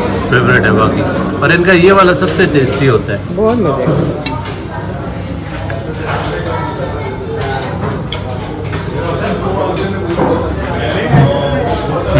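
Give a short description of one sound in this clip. A knife and fork scrape on a plate.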